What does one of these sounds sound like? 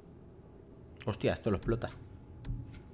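A young man speaks briefly into a microphone, close and casual.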